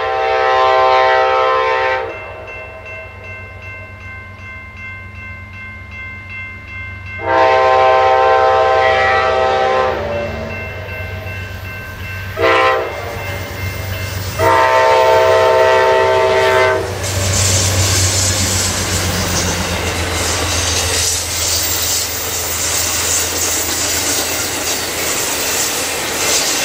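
A diesel locomotive engine rumbles deeply as it approaches and passes close by.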